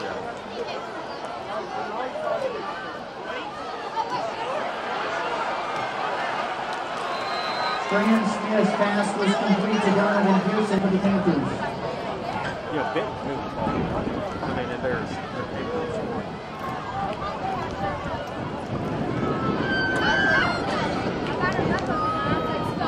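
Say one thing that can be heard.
A large crowd cheers and chatters outdoors.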